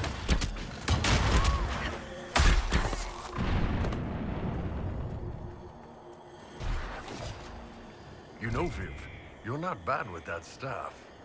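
Magic blasts burst with heavy booms.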